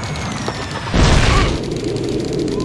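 A loud explosion booms close by.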